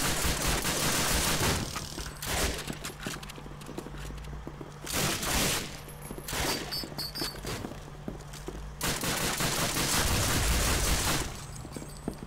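Rapid gunfire rattles loudly in bursts.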